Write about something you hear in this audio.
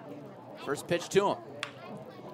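A bat cracks against a baseball.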